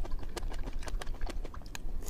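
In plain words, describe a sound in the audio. A fork clicks against a tray.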